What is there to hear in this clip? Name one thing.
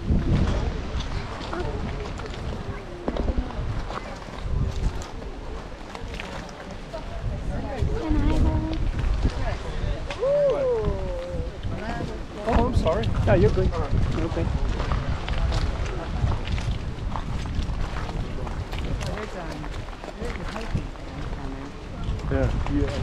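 Wind buffets the microphone outdoors in gusts.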